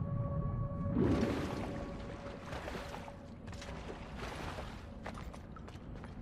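Water splashes and sloshes in bursts.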